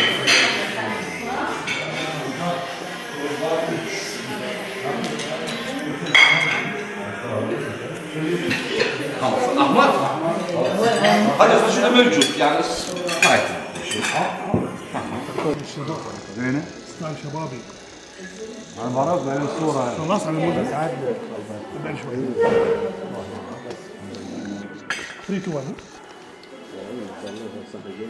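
Many men chatter in a room with some echo.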